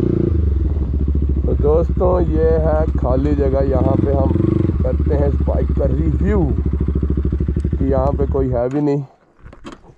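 A motorcycle engine hums steadily while riding, then cuts off.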